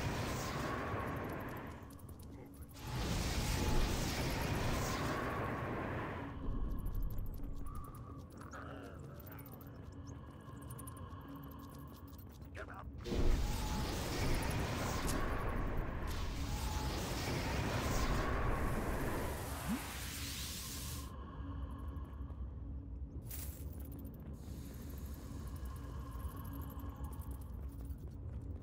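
Flames roar and crackle in bursts.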